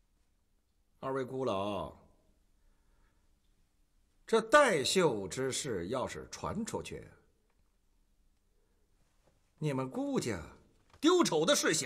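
A middle-aged man speaks sternly and firmly, close by.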